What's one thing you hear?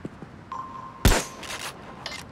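A shotgun fires a single loud blast.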